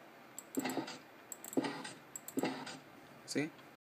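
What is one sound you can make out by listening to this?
A block breaks apart with a short crunch.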